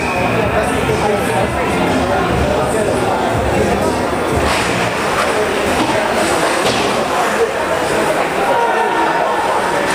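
Skates scrape and swish on ice in a large echoing rink.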